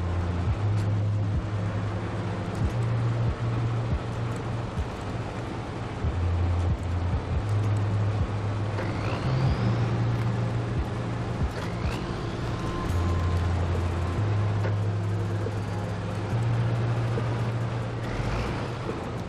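Snow and gravel crunch under heavy tyres.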